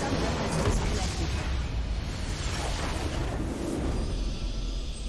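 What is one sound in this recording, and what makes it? Explosions and battle effects from a video game crash loudly.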